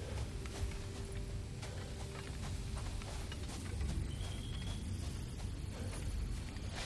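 A glowing magical doorway hums with a deep, steady rumble.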